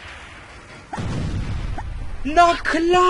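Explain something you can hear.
An explosion booms in a game.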